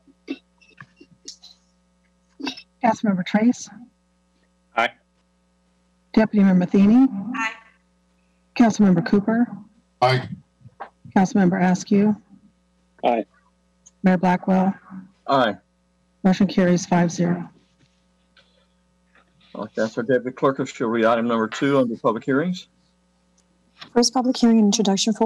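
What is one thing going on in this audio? Several men and women take turns speaking briefly through an online call.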